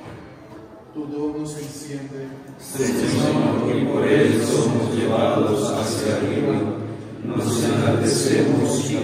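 A group of young men chants together in an echoing hall.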